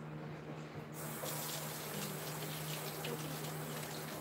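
Running water splashes into a sink.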